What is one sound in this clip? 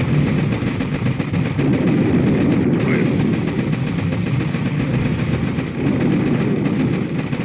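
Explosions and gunfire rumble in a video game battle.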